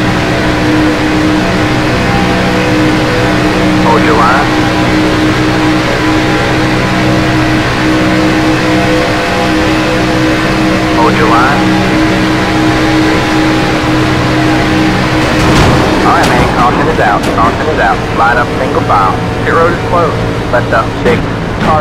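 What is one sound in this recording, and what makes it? A racing car engine drones loudly at a steady high pitch.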